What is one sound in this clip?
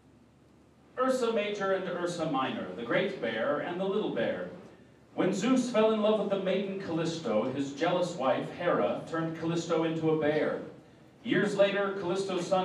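A man speaks clearly and expressively into a microphone.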